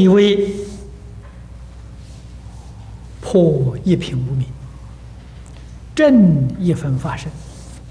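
An elderly man speaks calmly into a microphone in bursts, with pauses between phrases.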